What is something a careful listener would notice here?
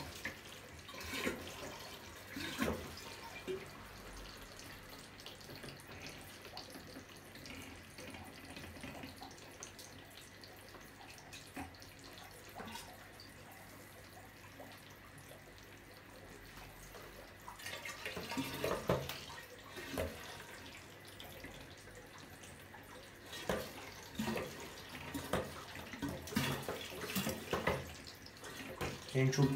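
Water gurgles through a siphon hose.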